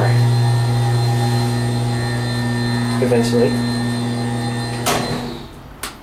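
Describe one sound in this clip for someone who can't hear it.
An elevator motor hums steadily, then stops.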